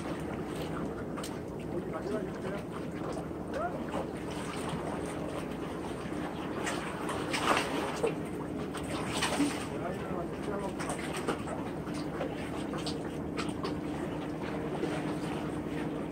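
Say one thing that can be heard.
Calm sea water laps against concrete breakwater blocks.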